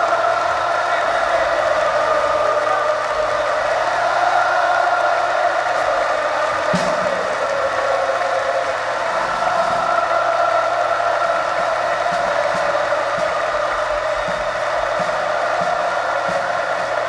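A rock band plays loud amplified music in a large echoing arena.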